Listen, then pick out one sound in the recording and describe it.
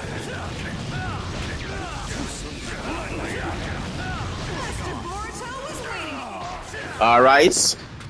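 Fiery blasts whoosh and roar.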